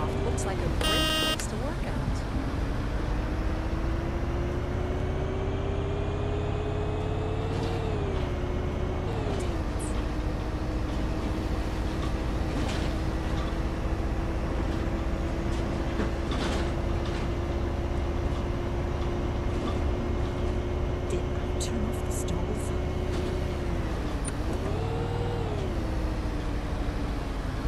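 A bus engine hums steadily, its pitch rising and falling as the bus speeds up and shifts gears.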